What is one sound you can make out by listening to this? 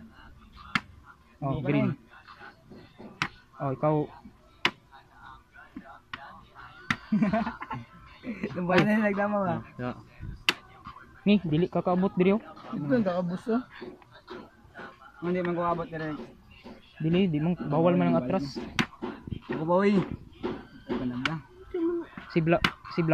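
Plastic bottle caps click and tap on a wooden board.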